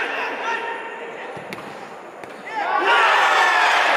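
A football is struck hard.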